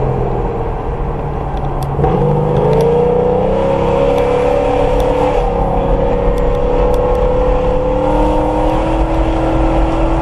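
A car engine hums and rises in pitch as the car speeds up.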